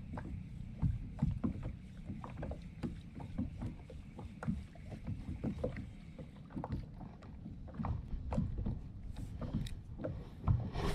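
Water laps and splashes against a small boat.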